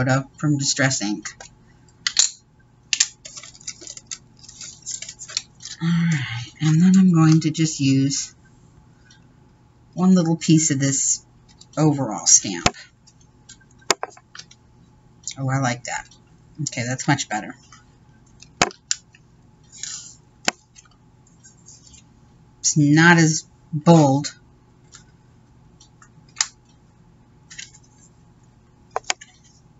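Paper rustles and crinkles under hands.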